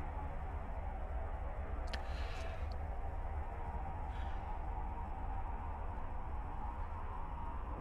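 A deep spaceship engine drones steadily.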